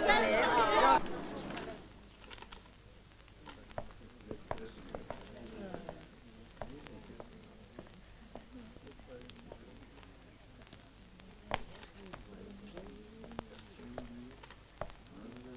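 Paper banknotes rustle and flick as they are counted.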